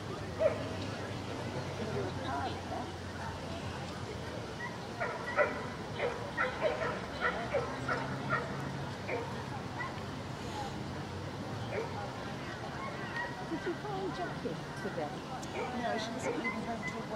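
A woman talks quietly nearby outdoors.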